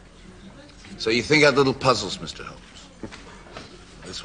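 A second man speaks calmly, asking a question.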